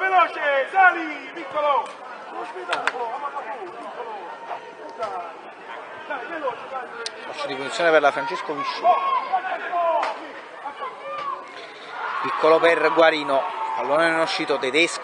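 Children and adults shout and cheer outdoors.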